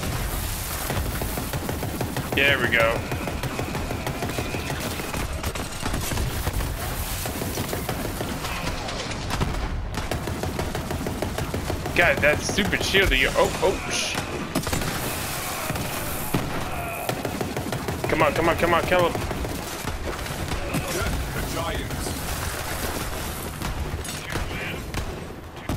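Guns fire in rapid bursts with loud crackling blasts.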